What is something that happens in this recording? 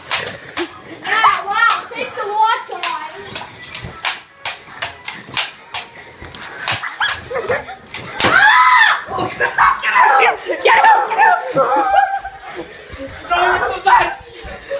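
A young boy shouts and laughs excitedly close by.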